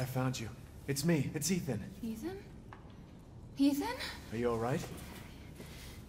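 A young woman speaks weakly and breathlessly, close by.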